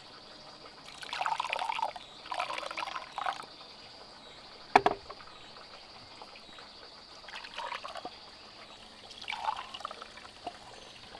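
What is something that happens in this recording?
Liquid pours from a bamboo vessel into a cup.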